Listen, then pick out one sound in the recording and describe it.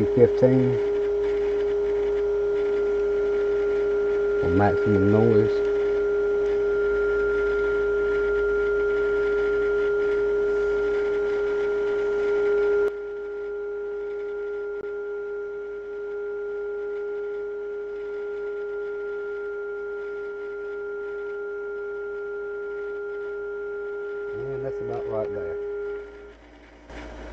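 A steady electronic tone hums from an old radio set.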